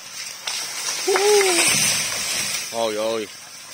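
A large tree crashes down through bamboo.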